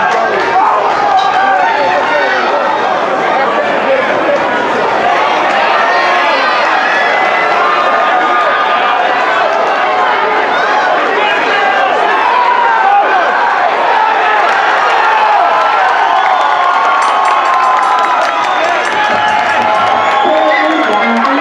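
A crowd of spectators shouts and cheers loudly close by.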